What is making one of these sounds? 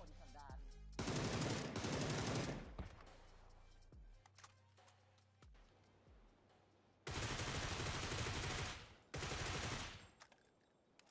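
A rifle fires loud rapid bursts of shots.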